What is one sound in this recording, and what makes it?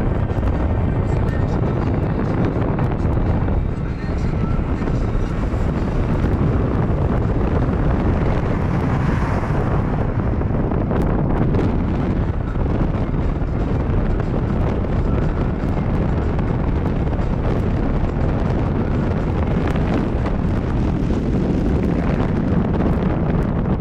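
Tyres roll on asphalt, heard from inside a moving car.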